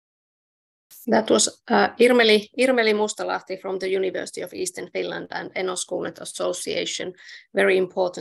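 A younger woman speaks steadily over an online call.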